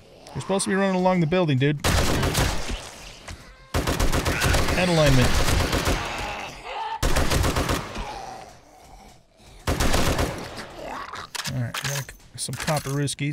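Zombies groan and snarl close by.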